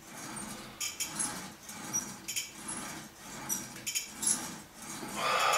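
A man breathes hard with each pull.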